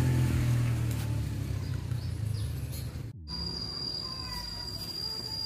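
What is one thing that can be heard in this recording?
A small petrol engine idles with a low, steady rumble.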